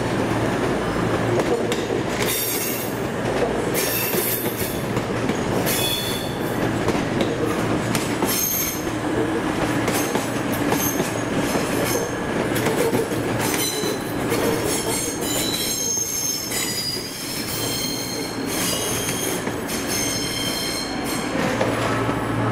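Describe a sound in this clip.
A train rumbles and clatters slowly past on the rails.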